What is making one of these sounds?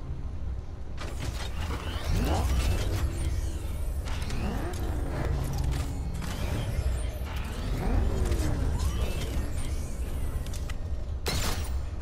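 A powerful car engine roars and revs.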